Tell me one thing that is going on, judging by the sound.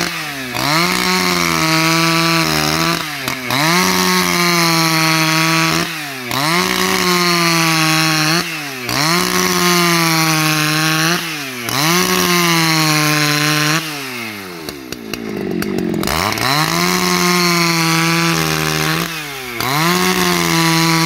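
A chainsaw engine roars loudly, revving up and dropping back again and again as it cuts through wood.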